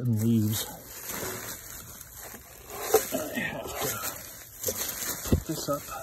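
Dry leaves rustle and crunch as a hand grabs them.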